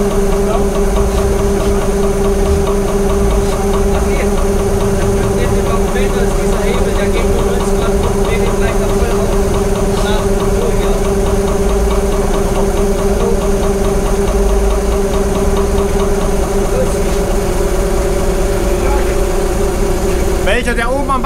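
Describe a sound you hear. A pump engine hums loudly and steadily, then winds down.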